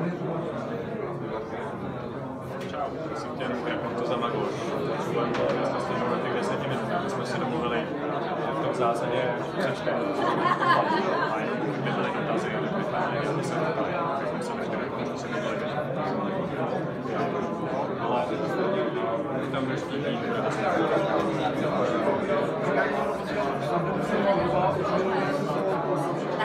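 A crowd of adults chatters all around, close by.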